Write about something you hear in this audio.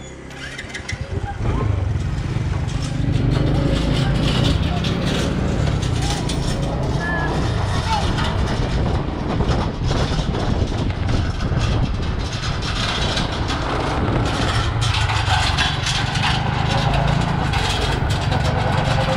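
A metal cargo cart rattles as it bounces.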